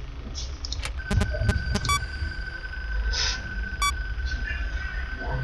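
A steady high electronic tone sounds.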